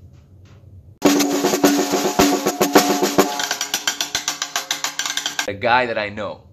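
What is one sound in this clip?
A drumstick plays a fast roll on a snare drum.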